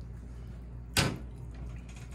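A spoon knocks against a pot.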